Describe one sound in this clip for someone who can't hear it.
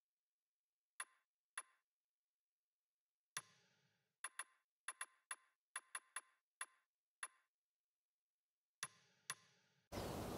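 Short menu clicks tick one after another.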